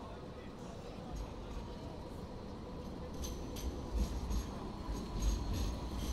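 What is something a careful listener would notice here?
A tram rolls by with a low rumble.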